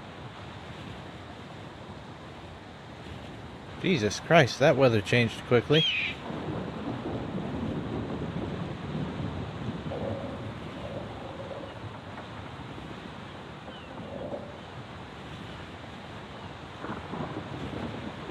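Wind rushes steadily past a glider in flight.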